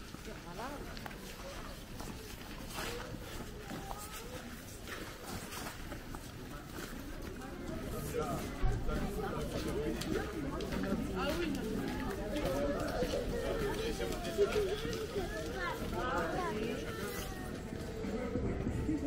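Footsteps tread on a wet pavement.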